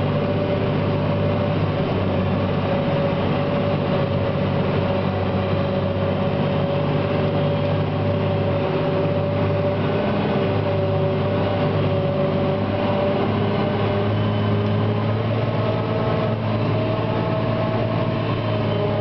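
A forage pickup rattles and whirs as it gathers cut grass.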